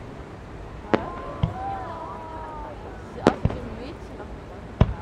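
Fireworks whistle and crackle as they rise.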